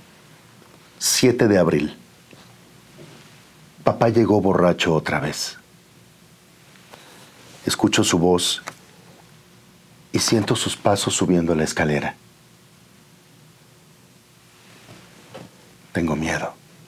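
A middle-aged man speaks calmly and clearly into a nearby microphone, pausing between phrases.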